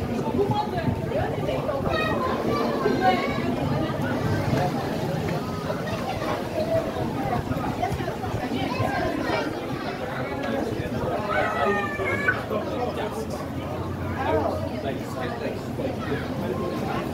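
Footsteps shuffle on a walkway.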